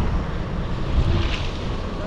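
A snowplow rumbles as it drives closer.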